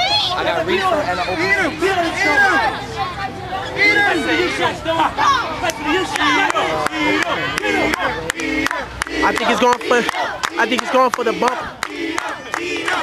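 A crowd of children and adults shout and cheer loudly outdoors.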